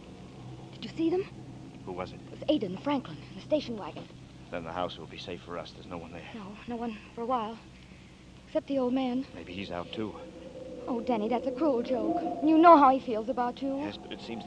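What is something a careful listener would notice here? A woman speaks with anguish into a microphone.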